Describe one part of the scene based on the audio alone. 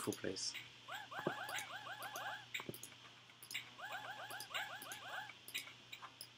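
Quick electronic blips chirp in rapid runs.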